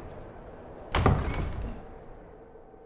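A heavy wooden door opens with a loud thud.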